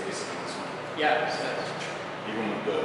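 A second man speaks with animation nearby.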